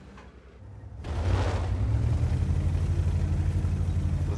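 A tank cannon fires with a loud, roaring boom.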